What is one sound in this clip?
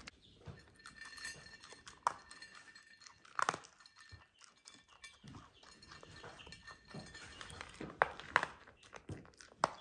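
Kibble clicks and rattles against a plate.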